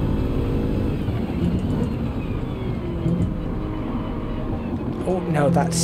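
A car engine drops in pitch and revs in bursts as the car slows and shifts down.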